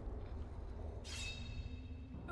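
A stone button clicks as it is pressed.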